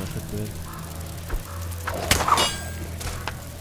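A sling whirls and snaps as a stone is shot.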